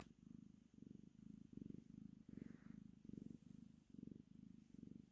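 A cat purrs close up, in a rhythm of breathing in and out.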